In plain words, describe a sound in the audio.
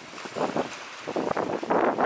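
A fishing reel whirs as its handle is turned.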